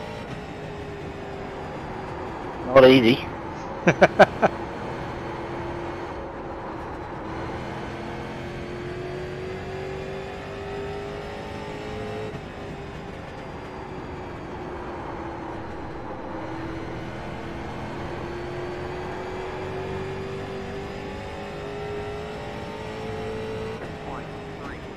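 A race car engine drones steadily, its pitch rising and falling with speed.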